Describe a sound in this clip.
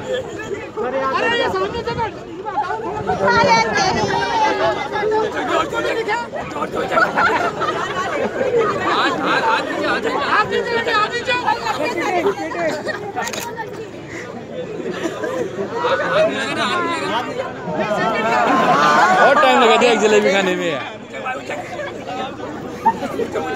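Young women sing and shout loudly outdoors.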